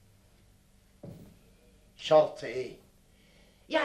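A middle-aged man speaks firmly and forcefully, close by.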